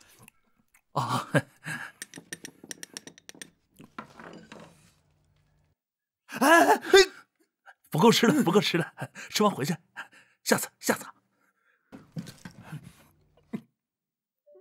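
A man speaks in a rough voice, close by.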